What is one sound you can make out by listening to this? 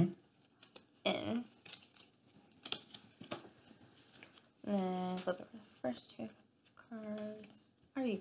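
Playing cards tap and slide on a wooden table.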